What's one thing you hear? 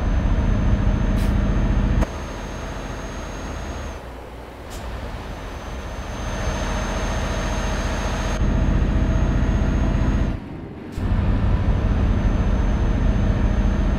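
A truck engine drones steadily, louder from inside the cab and quieter from outside.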